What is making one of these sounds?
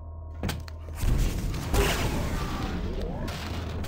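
A weapon fires with a sharp electric crackle.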